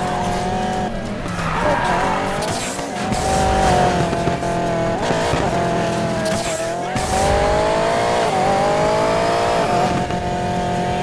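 Tyres screech as a car drifts through bends.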